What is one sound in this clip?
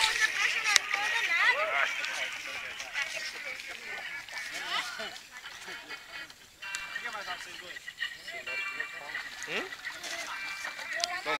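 Water splashes as children kick and paddle.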